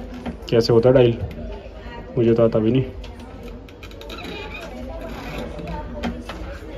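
A rotary phone dial whirs and clicks as it is turned and springs back.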